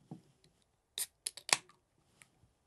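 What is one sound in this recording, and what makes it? A drink can hisses and clicks open.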